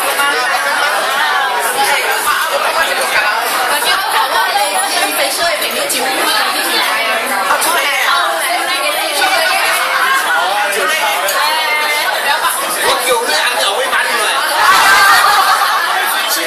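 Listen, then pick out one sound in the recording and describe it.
A crowd of adults chatters and talks over one another loudly indoors.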